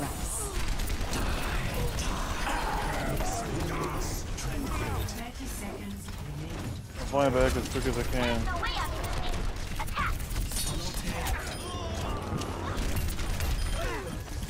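Rapid gunfire rattles in a video game.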